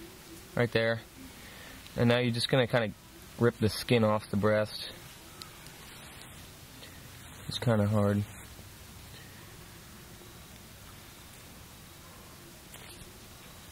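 Feathers rip softly as they are plucked from a bird.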